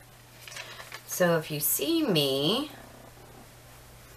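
Sheets of paper rustle in a woman's hands.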